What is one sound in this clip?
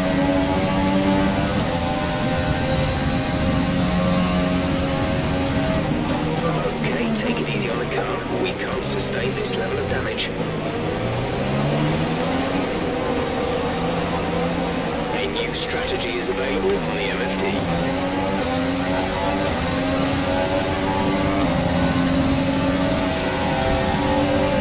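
A racing car engine screams at high revs, dropping in pitch when braking and rising again as it speeds up.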